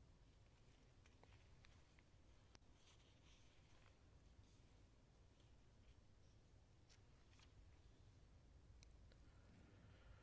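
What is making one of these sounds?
Paper rustles softly as pages are handled.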